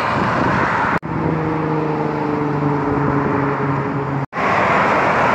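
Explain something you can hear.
A car engine hums loudly as a car drives by.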